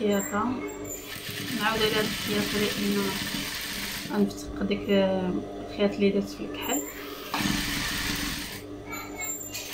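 A sewing machine runs in quick bursts.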